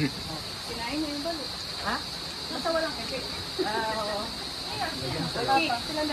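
Several women chat and laugh in a room.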